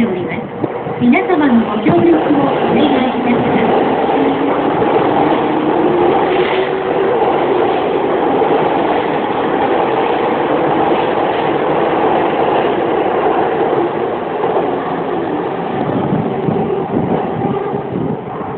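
A train rolls in with a loud, steady rumble and whine.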